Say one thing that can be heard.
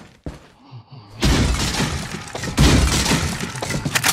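A knife strikes a wooden crate.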